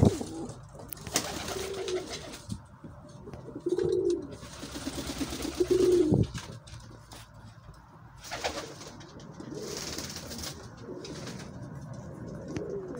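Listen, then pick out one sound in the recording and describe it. A pigeon coos softly and repeatedly close by.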